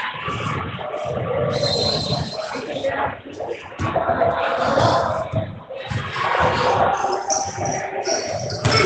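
Young women shout and call out across an echoing gym.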